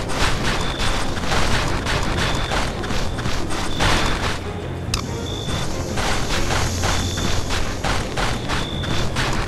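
Boots crunch steadily through snow.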